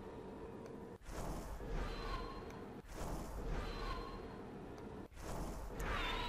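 A staff swishes through the air.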